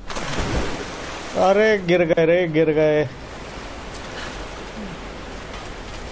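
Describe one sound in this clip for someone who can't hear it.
Water ripples and laps as someone swims.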